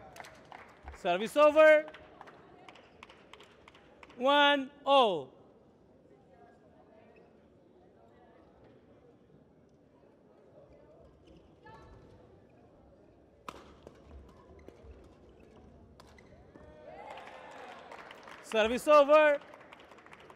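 Female players shout loudly.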